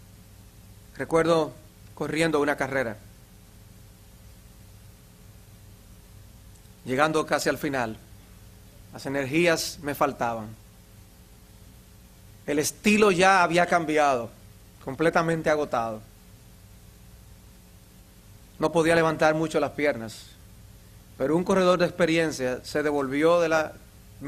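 A middle-aged man speaks slowly into a microphone, in short phrases with long pauses.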